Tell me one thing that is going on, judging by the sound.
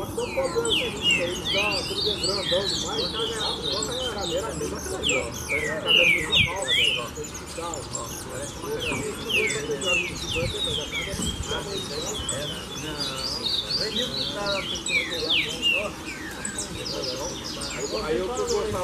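A green-winged saltator sings loud, rich whistled phrases.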